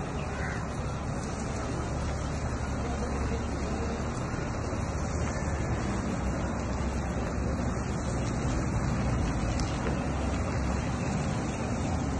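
A heavy truck drives slowly away across paving.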